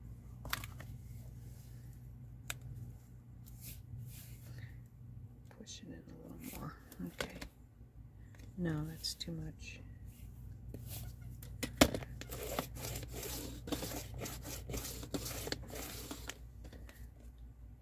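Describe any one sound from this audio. Paper slides and rustles under a hand.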